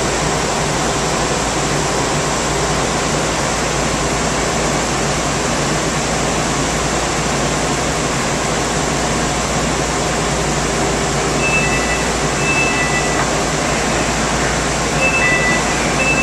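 A train's ventilation and motor hum steadily while it stands with its doors open.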